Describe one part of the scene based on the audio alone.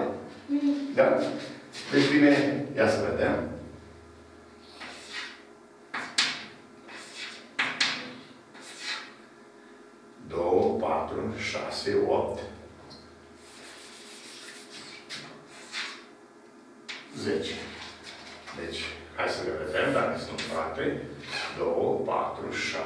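An elderly man speaks calmly, explaining.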